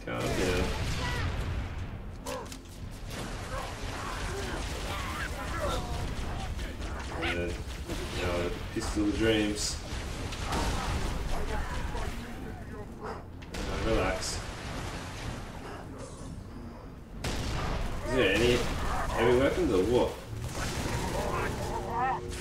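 Gunfire and explosions from a game rattle on.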